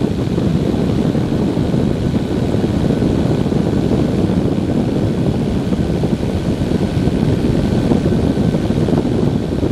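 A small aircraft engine drones loudly and steadily close by.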